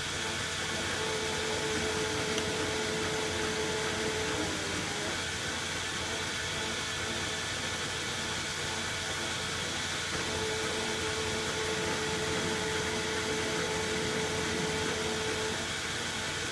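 A cutter whines as it cuts into spinning metal.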